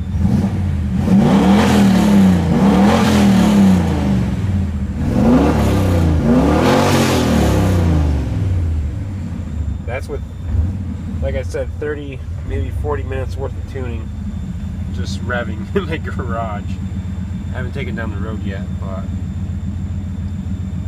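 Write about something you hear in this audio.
A car engine revs up and down repeatedly, then settles to a steady idle.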